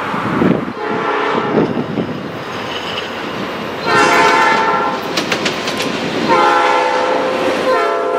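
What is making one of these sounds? Train wheels clatter over the rails as the train passes close by.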